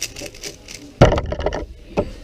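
A hand slaps down on a timer pad.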